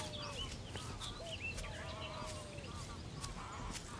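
Footsteps walk away on the ground.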